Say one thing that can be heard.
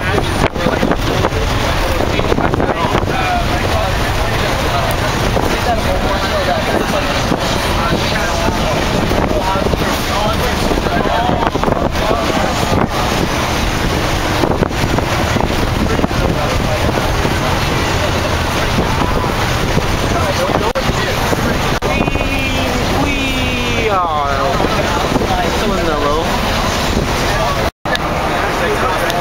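A bus engine rumbles loudly while driving.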